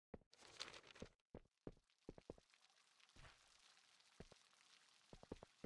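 Footsteps climb stone stairs.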